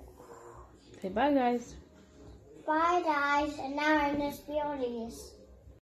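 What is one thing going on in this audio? A young boy talks excitedly, close by.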